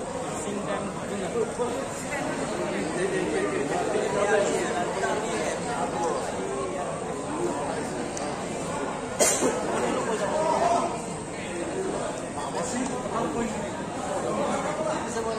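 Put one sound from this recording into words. Several men talk at once nearby in a noisy crowd.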